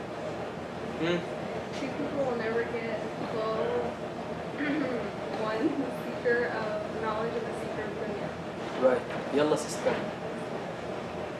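A young man speaks calmly and softly, close by.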